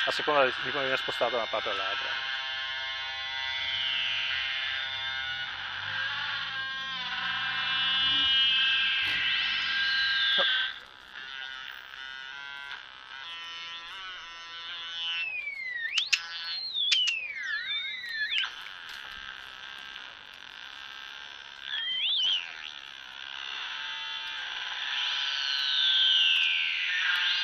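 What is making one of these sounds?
Electronic synthesizer tones buzz, sweep and warble.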